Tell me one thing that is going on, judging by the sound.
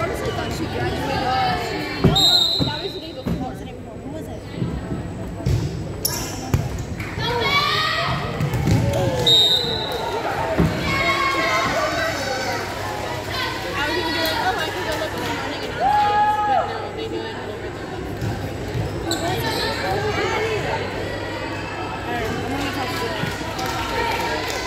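Young women players call out and shout to each other.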